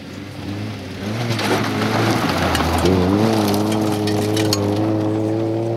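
Gravel crunches and sprays under spinning tyres.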